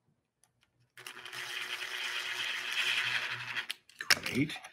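A cordless drill whirs as it drives into wood.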